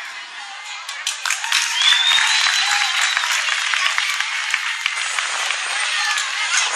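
Young girls clap their hands.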